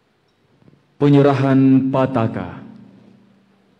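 A man speaks loudly through a microphone in a large echoing hall.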